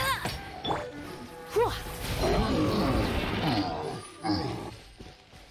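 Magic blasts crackle and burst in a fight.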